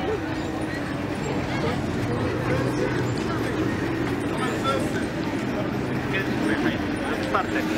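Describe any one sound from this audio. A small tourist train rolls past with a steady hum.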